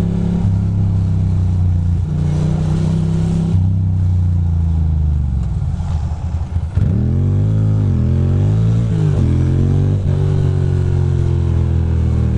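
A motorcycle engine rumbles loudly up close, revving up and down as it rides along a street.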